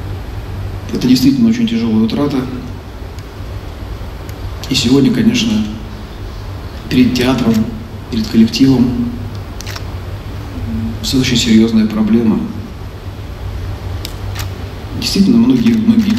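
A man speaks slowly and solemnly into a microphone, with long pauses, in a large echoing hall.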